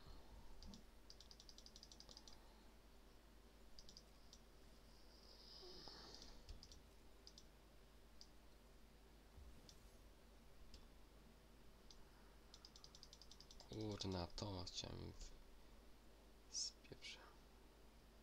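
A game menu ticks and clicks as the selection moves between options.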